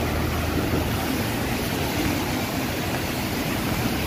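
A car splashes through deep water on the road.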